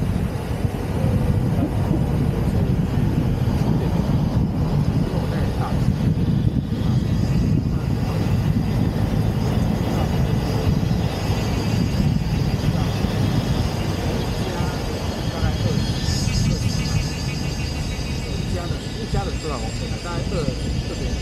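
Wind rushes and buffets loudly past an open car.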